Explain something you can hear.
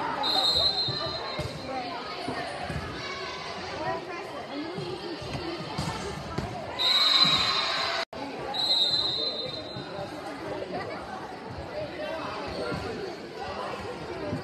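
A crowd of spectators chatters and cheers in a large echoing hall.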